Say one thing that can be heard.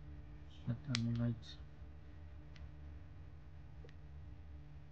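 Small buttons click as they are pressed.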